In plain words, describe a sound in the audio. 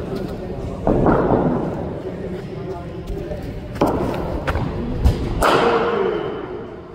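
A cricket ball cracks off a bat with a sharp echo.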